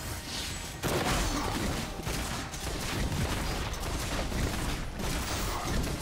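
Fiery spell effects whoosh and crackle.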